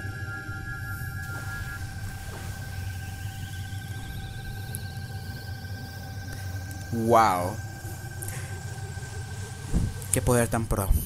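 Glowing orbs give off a steady, low electronic hum.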